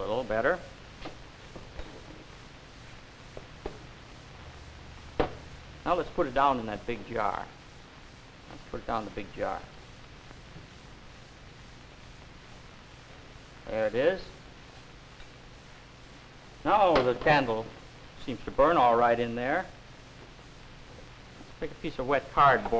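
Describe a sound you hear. A man speaks calmly, heard through an old, hissy recording.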